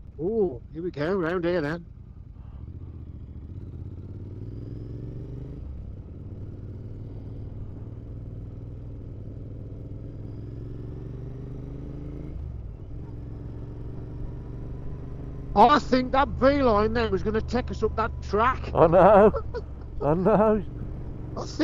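A motorcycle engine rumbles steadily at low speed.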